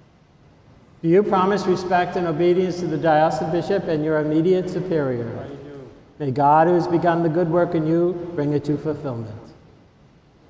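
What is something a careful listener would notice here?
An elderly man chants a prayer through a microphone in a large echoing hall.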